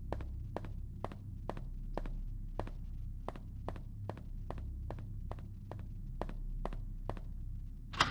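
Footsteps tap steadily on a hard floor in an echoing hall.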